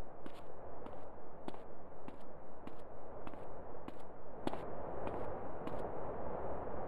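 Footsteps walk at a steady pace on pavement.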